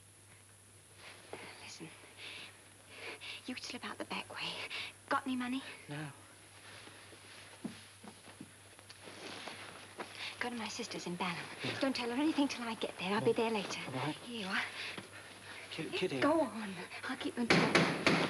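A young woman speaks warmly and playfully, close by.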